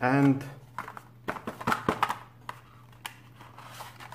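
A cardboard box lid slides off with a soft scrape.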